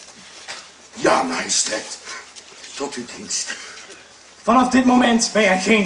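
A man speaks loudly and forcefully.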